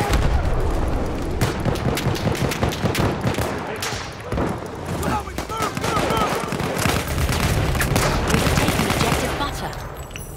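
Distant gunfire crackles steadily.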